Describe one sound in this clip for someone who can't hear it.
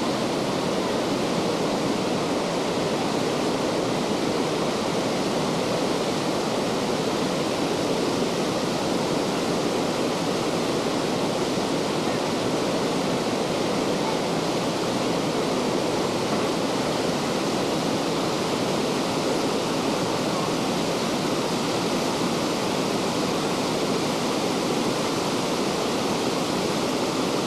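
A stream rushes steadily over rocks nearby.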